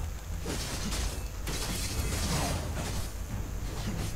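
Video game sword strikes whoosh and clash.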